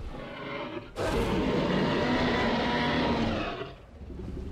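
A large dinosaur lets out a loud, deep roar.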